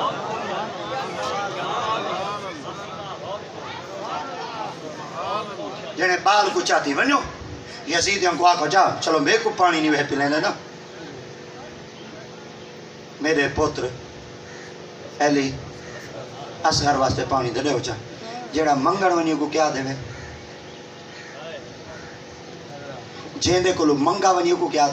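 A man speaks with animation into a microphone, heard through loudspeakers outdoors.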